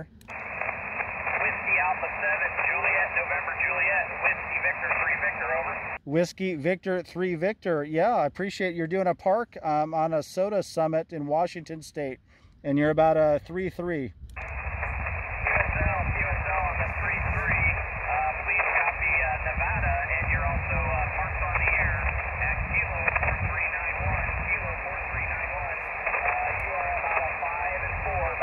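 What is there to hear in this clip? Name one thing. A radio receiver hisses with crackling static through its small speaker.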